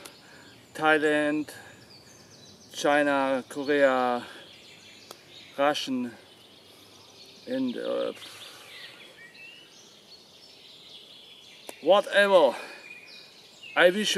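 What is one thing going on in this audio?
A young man talks with animation, close by, in short bursts with pauses.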